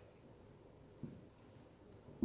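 A wooden board is set down with a soft thud.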